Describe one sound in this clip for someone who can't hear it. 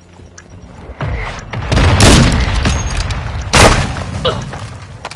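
Gunshots crack loudly from a video game.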